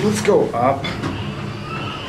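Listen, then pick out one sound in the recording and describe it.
A button clicks as it is pressed.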